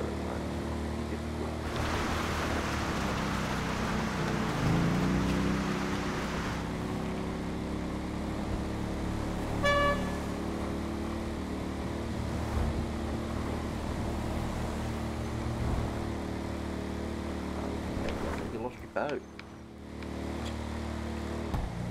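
A quad bike engine hums steadily.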